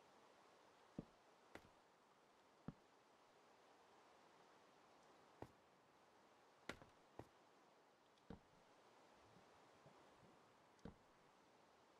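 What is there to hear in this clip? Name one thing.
Wooden blocks knock softly as they are placed.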